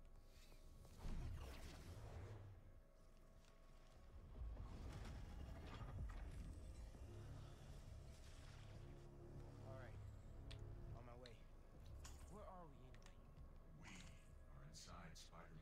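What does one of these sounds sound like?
Deep rumbling game effects swell and boom.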